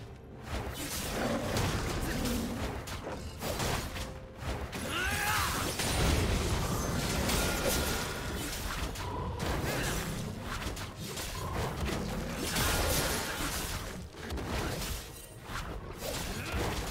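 Magic spells whoosh and burst in a game fight.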